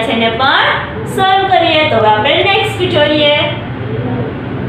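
A young woman speaks calmly and clearly into a microphone.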